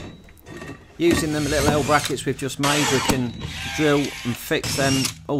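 A cordless drill whirs.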